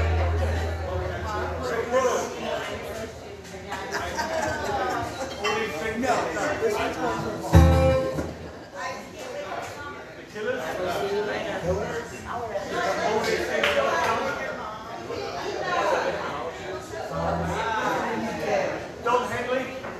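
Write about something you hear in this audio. An older man talks into a microphone, heard through a loudspeaker in a room.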